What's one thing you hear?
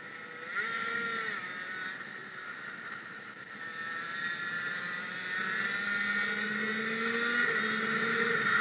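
Wind rushes past.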